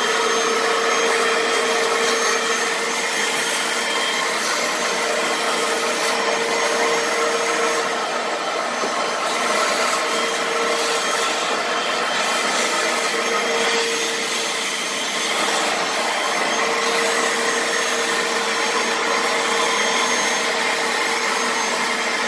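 A suction nozzle hisses and slurps as it drags over fabric.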